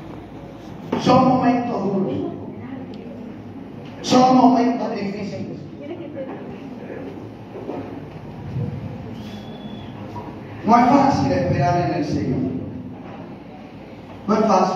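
A man speaks forcefully through a loudspeaker in a large echoing hall, in bursts with pauses.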